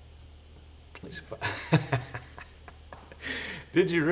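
A middle-aged man laughs heartily close to a microphone.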